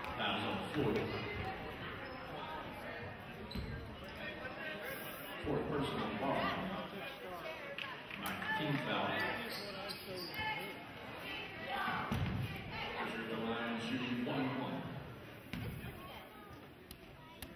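A crowd of spectators chatters in an echoing gym.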